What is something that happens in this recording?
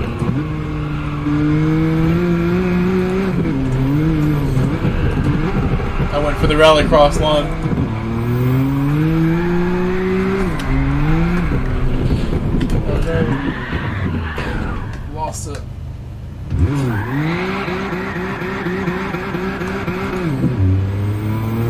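A racing car engine revs up and down through gear changes.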